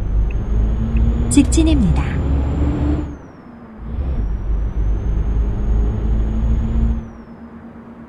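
A truck engine rumbles low and steady, easing off at times.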